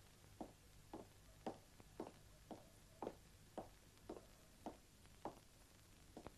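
Hurried footsteps run over hard ground.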